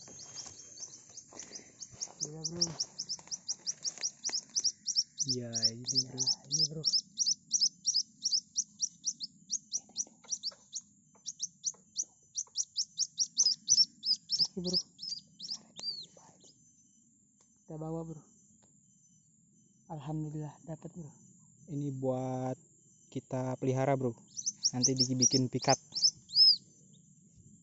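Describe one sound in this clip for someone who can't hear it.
A white-breasted waterhen chick peeps in high, rapid cheeps.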